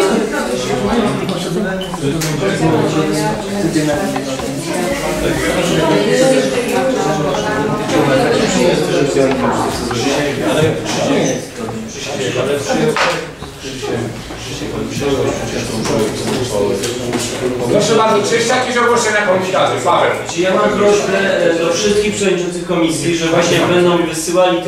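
Several men and women talk over one another with animation.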